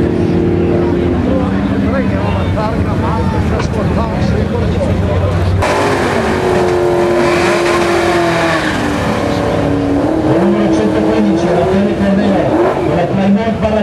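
A race car engine rumbles and revs nearby.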